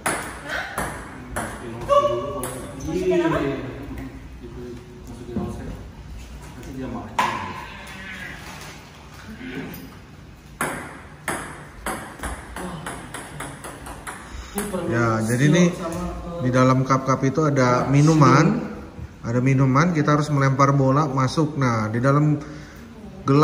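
Ping-pong balls bounce on a table and clatter into plastic cups.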